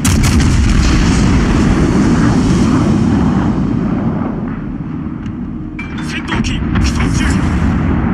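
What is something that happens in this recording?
Heavy naval guns boom and rumble in a game.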